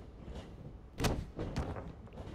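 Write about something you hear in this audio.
A body slams hard onto a wrestling mat with a thud.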